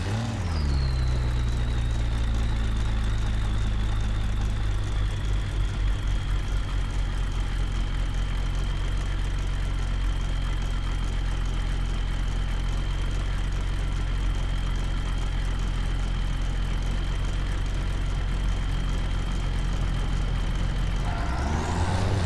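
A truck's diesel engine idles with a steady low rumble.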